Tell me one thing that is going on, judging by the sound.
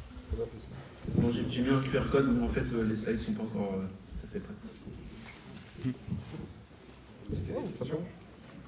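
A young man speaks into a microphone over loudspeakers in a large hall.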